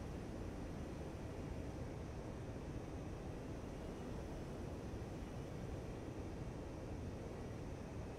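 A fighter jet's engines roar steadily, heard from inside the cockpit.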